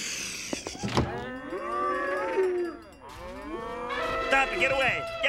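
Several voices bray, moo and howl like farm animals in a loud chorus.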